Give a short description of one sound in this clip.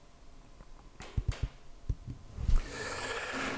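Plastic parts click and snap together as they are handled.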